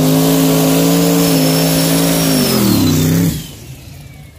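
A race car engine roars loudly at high revs, then drops off.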